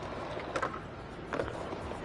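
A skateboard clacks as it lands a jump.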